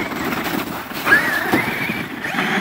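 A toy car flips and clatters onto its roof.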